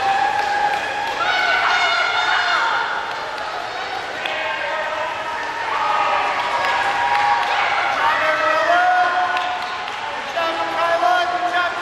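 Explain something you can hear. Swimmers splash through the water in a large echoing hall.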